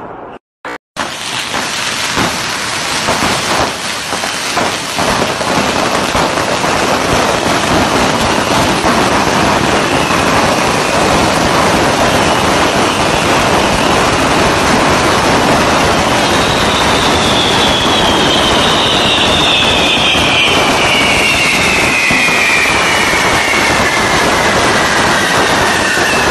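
Fireworks crackle and bang loudly and without a break in a street.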